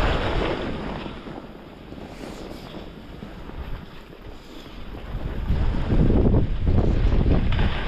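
Skis hiss and swish through soft snow.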